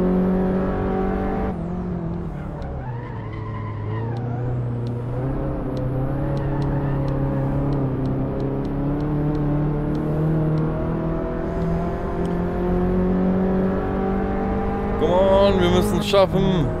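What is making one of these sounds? A small car engine drones and shifts pitch as it revs through the gears.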